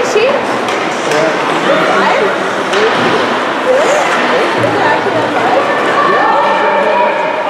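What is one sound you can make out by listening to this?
Young players shout and call out to each other across the rink.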